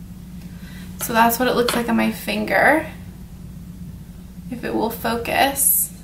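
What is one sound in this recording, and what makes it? A young woman speaks softly and calmly, close to a microphone.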